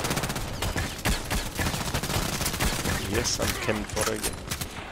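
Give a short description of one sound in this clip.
A rifle clicks and clatters as it is reloaded.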